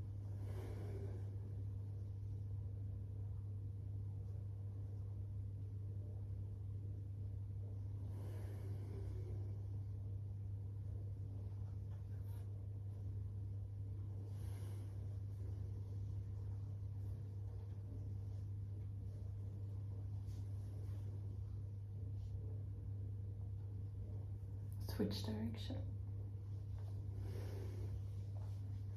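A woman breathes out slowly and deeply.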